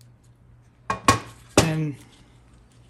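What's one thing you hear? A heavy metal plate knocks down onto a hard surface.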